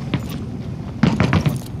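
A gun fires several quick shots.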